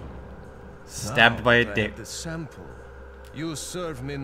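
An adult man speaks slowly and menacingly, close by.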